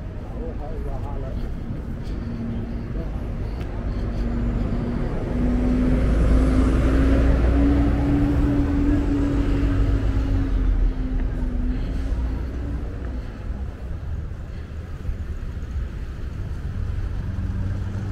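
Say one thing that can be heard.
Heavy city traffic rumbles steadily outdoors.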